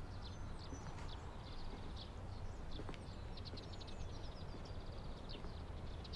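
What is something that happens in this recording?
Footsteps approach slowly on a garden path.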